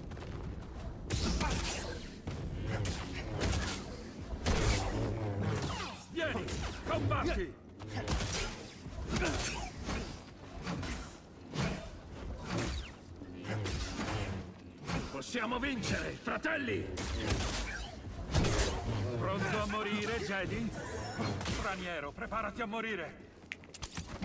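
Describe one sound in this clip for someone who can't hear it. A light saber hums in a fight.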